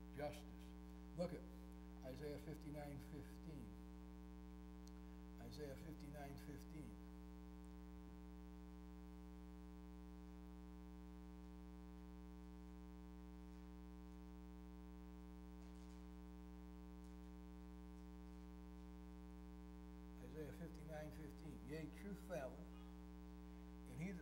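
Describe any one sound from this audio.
An elderly man speaks slowly and calmly through a microphone, with long pauses.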